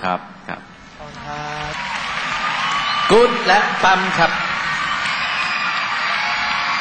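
A large crowd cheers and screams loudly.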